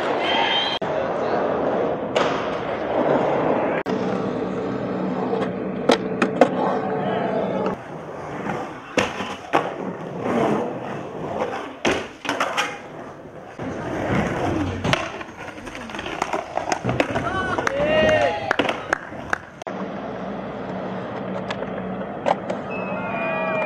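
A skateboard clatters as it lands on concrete.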